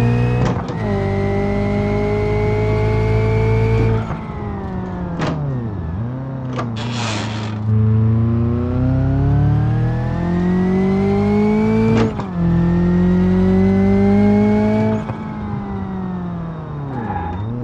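A simulated car engine revs up hard and drops back at each gear change.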